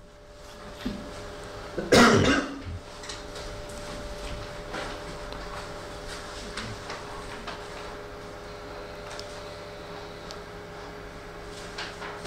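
Faint taps sound on a phone's keys.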